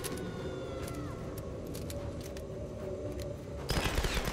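Flames crackle.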